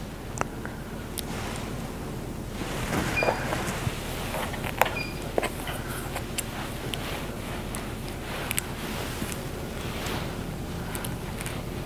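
A comb rustles through hair.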